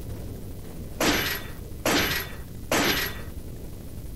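Metal chains clank against a wooden gate.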